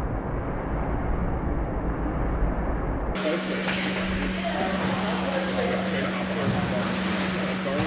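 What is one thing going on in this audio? Water churns and rushes steadily in an echoing indoor pool.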